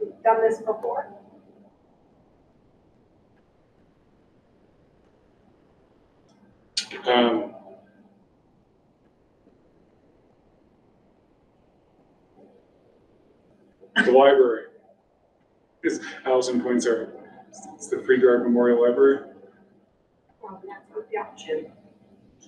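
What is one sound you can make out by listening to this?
A middle-aged man speaks calmly through a meeting microphone, in short bursts with pauses.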